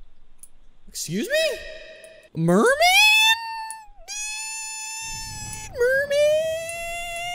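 A young man wails and yells loudly into a close microphone.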